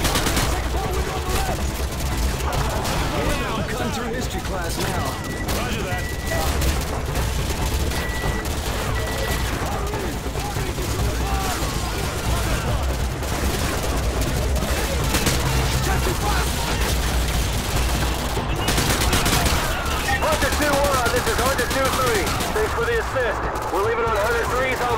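Gunfire rattles from a video game.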